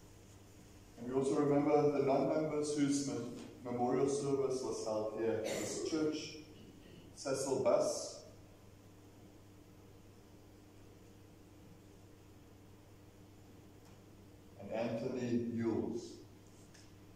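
A man speaks calmly at a distance, reading out in a reverberant hall.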